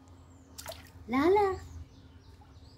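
A toddler squeals happily close by.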